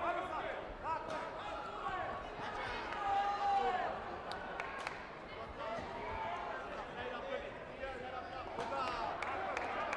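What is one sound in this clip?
Fighters' kicks thud against padded body protectors.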